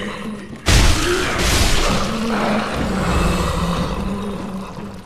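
A heavy blast bursts with a roar and rumbles on.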